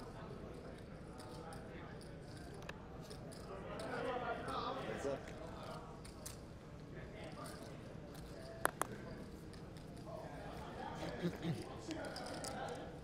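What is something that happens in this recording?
Poker chips click together.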